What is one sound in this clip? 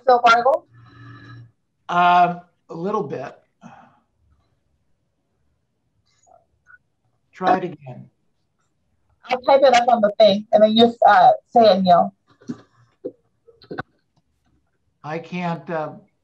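A woman speaks calmly over an online call.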